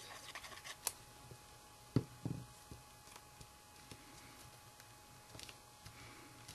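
Small objects tap and click on a table.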